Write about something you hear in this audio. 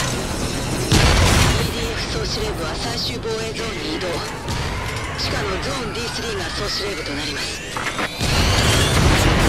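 A rocket launcher fires with a sharp blast.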